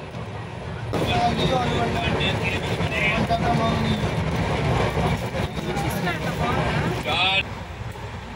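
A young woman talks nearby.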